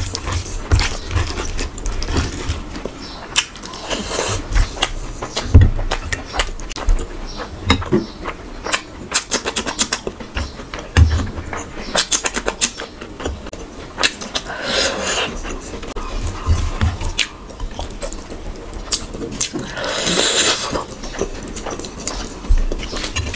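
Fingers squish and mix soft rice and gravy.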